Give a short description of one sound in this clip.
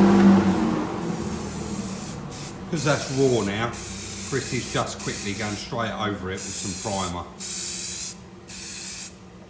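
A spray can hisses in short bursts.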